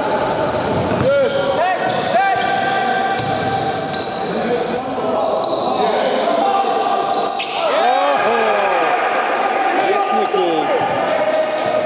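Basketball shoes squeak sharply on a wooden floor in a large echoing hall.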